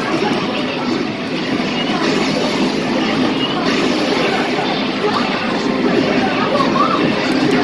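Punches and kicks thud from a fighting game through loudspeakers.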